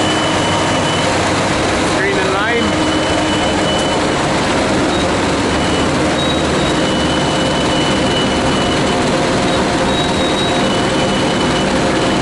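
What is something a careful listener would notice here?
Gravel pours and rattles off a conveyor onto a pile.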